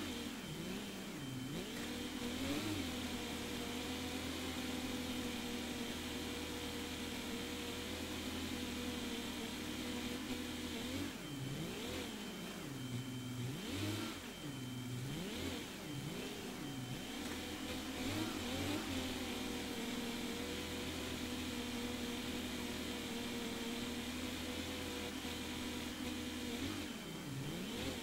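A tractor engine drones, its pitch dipping and rising now and then.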